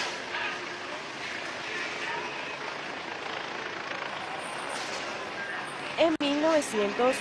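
A large crowd murmurs and calls out outdoors.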